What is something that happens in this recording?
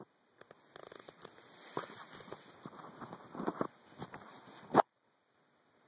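A coin spins and rattles on a wooden table.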